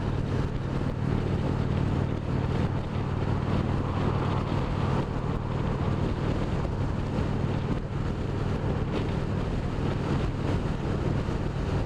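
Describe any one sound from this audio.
Wind rushes hard against the rider.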